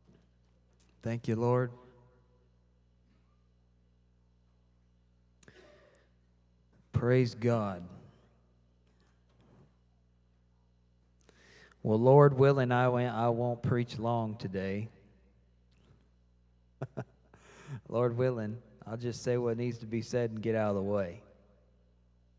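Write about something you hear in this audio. A man speaks into a microphone with pauses, heard through loudspeakers in a large room.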